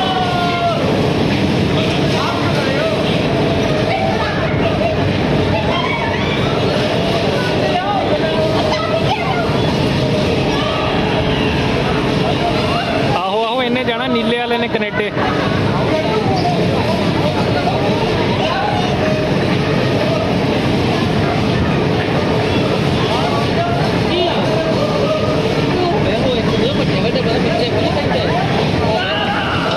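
A crowd of men and women chatter loudly nearby.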